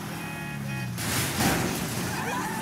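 A car crashes with a loud thud into a bush.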